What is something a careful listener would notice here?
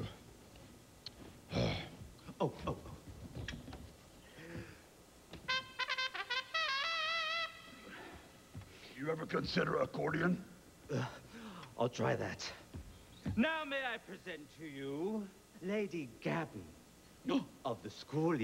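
A gruff puppet voice speaks with a growl.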